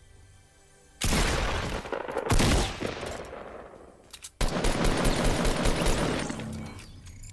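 Video game pistol shots fire in quick bursts.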